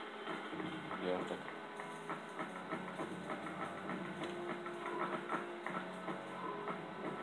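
Small coins jingle quickly, one after another, through a television loudspeaker.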